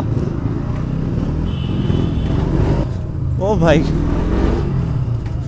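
A motorcycle engine hums low and steady.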